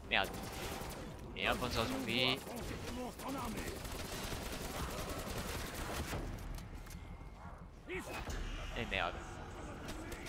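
Zombies shriek and groan nearby.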